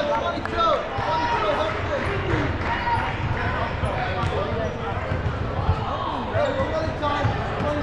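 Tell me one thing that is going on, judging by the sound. A crowd of spectators chatters in a large echoing gym.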